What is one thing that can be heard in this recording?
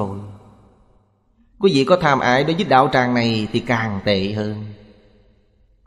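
An elderly man speaks calmly and close to the microphone, as in a sermon.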